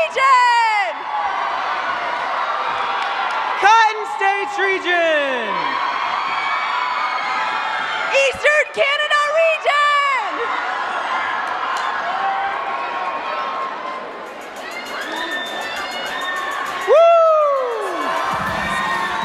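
A large crowd cheers and whoops in a big echoing hall.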